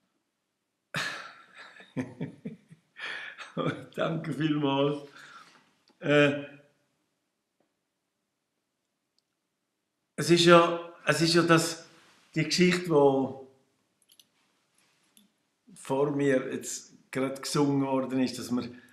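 An elderly man talks warmly over an online call.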